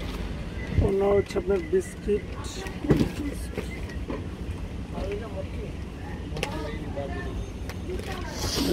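Fabric rustles as a garment is unfolded and handled.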